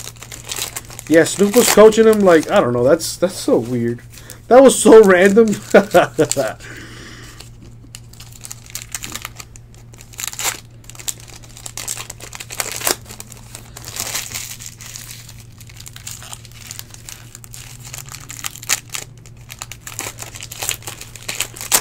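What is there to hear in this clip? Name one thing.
Foil wrappers crinkle and tear as packs are opened by hand.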